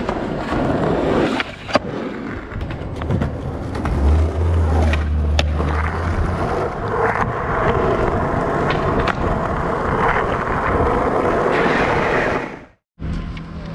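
Skateboard wheels roll loudly over rough asphalt.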